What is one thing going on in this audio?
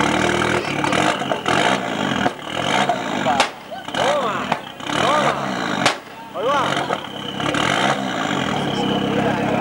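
A car engine revs sharply in repeated bursts close by.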